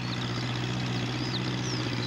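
A tractor engine chugs close by.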